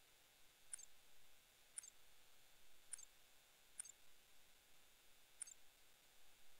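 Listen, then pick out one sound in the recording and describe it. Short, sharp menu clicks sound as selections change.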